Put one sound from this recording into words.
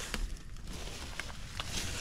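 Leafy branches rustle close by.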